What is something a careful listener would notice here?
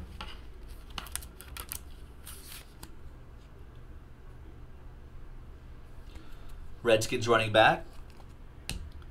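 Plastic card holders click and rustle in hands.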